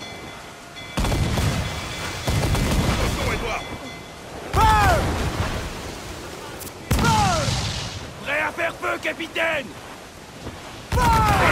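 Cannons fire in loud, booming blasts.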